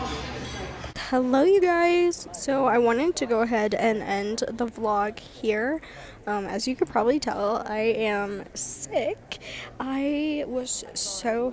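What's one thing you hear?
A young woman talks closely and casually to a nearby microphone.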